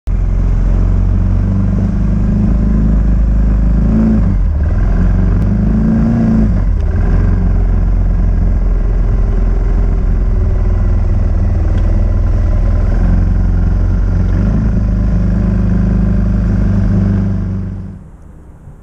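A small engine drones steadily as it drives along.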